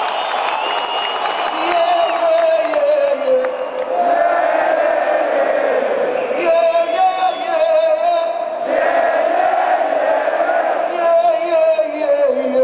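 A man sings through loudspeakers.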